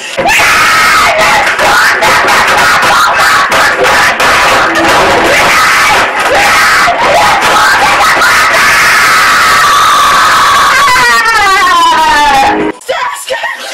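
A young man screams and shouts loudly and frantically close by.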